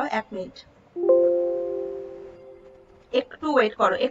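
A computer alert chimes once and rings out.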